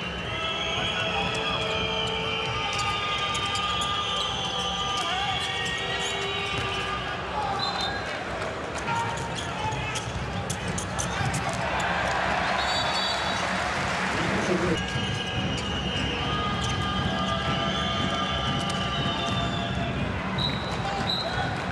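A large crowd cheers and chants loudly in a big echoing hall.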